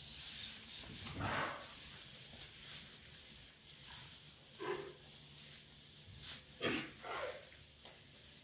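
Calves moo and bleat nearby.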